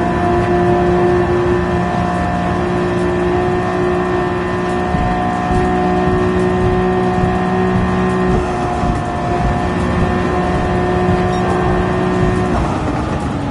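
A car engine roars at high, steady speed.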